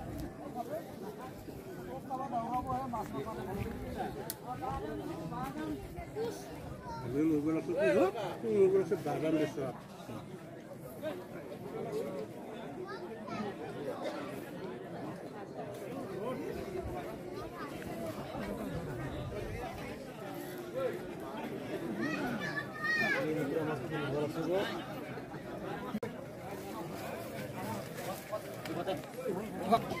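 Men talk nearby with animation.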